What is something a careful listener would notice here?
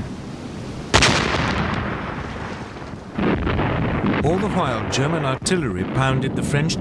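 Artillery guns fire with loud booms.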